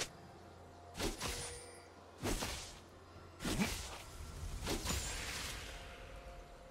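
Short game sound effects whoosh and chime.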